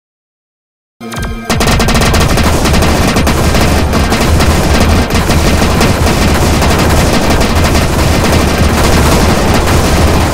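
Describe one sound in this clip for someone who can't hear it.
Game blasters fire rapidly.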